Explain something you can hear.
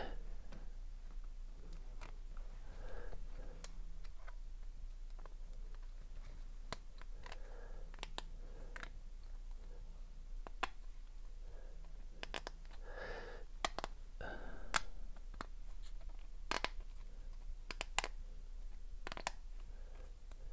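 Small plastic parts click and snap.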